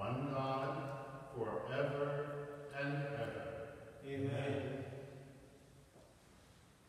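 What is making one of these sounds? An elderly man chants slowly in a large echoing hall.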